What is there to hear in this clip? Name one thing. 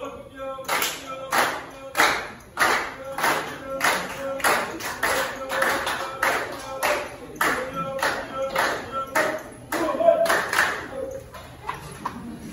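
A choir of men and women sings together.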